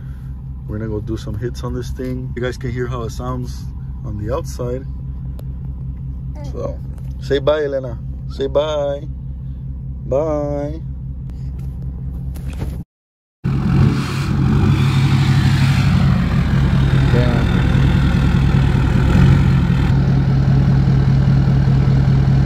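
A truck engine idles with a steady low hum.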